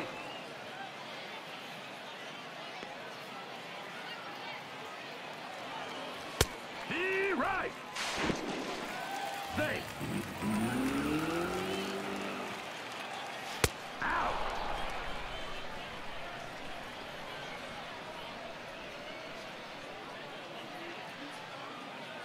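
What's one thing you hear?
A stadium crowd murmurs in a large open ballpark.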